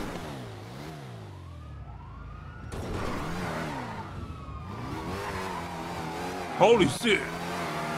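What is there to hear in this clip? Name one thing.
Tyres screech as a car slides.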